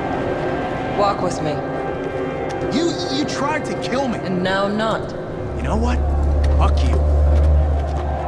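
A man speaks angrily, close by.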